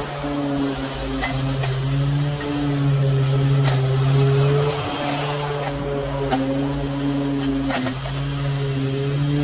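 A petrol lawn mower engine hums steadily close by.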